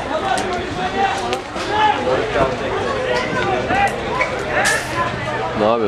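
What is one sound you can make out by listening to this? Men shout to each other outdoors across a sports field.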